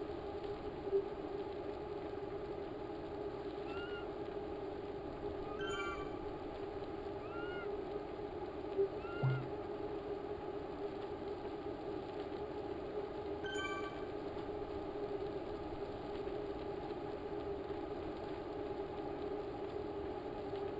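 A bike trainer whirs steadily as a rider pedals.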